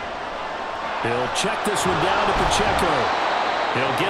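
Football players collide and thud in a tackle.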